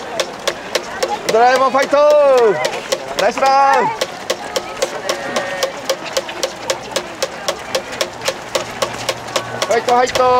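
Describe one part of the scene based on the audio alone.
Running shoes slap on pavement in a quick, steady rhythm.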